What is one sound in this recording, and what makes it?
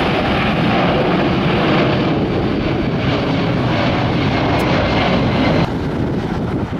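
A jet airliner roars loudly as it climbs overhead.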